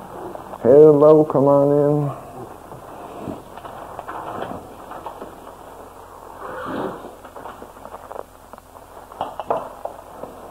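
A middle-aged man talks calmly into a microphone.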